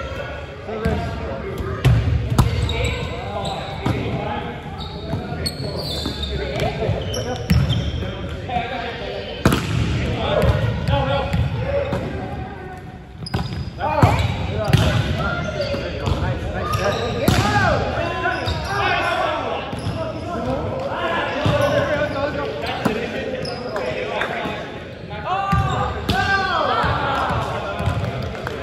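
Young men call out and talk loudly, echoing in a large hall.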